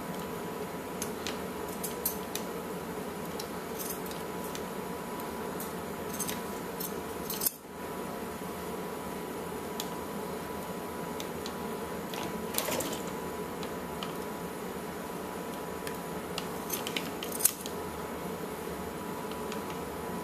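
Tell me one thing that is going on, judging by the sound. Small plastic parts click and tap as hands fit them onto a toy.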